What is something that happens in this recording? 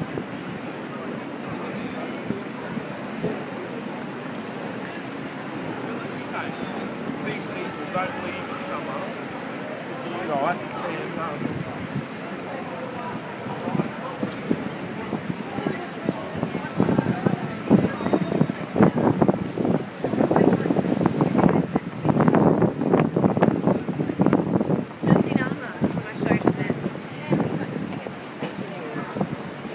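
Men and women chatter nearby outdoors, louder in the second half.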